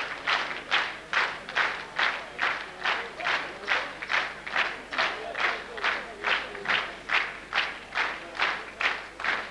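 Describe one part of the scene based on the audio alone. A large crowd claps in steady rhythm together.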